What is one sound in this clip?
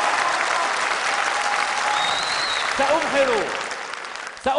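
A large crowd claps and cheers loudly.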